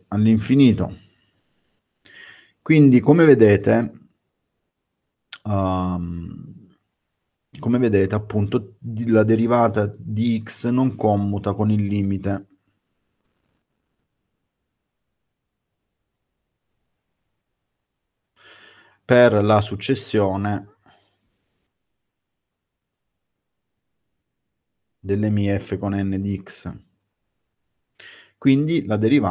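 A man speaks calmly into a microphone over an online call, pausing between phrases.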